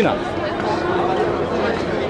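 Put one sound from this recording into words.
Young men laugh and cheer together.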